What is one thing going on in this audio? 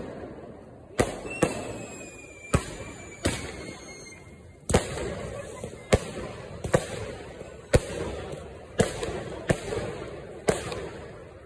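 Fireworks burst with loud, sharp bangs overhead, echoing away.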